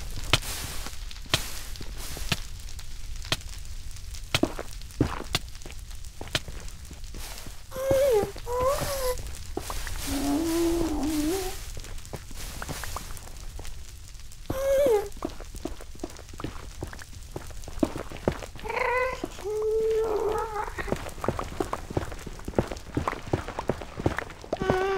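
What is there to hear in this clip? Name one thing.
A pickaxe taps and chips at stone blocks in quick strikes.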